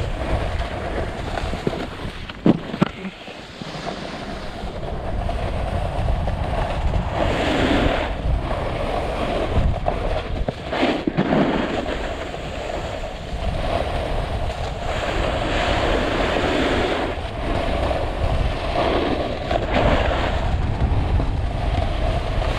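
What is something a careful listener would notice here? A snowboard scrapes and hisses over packed snow.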